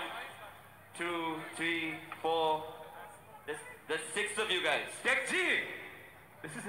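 A young man speaks excitedly into a microphone over loudspeakers.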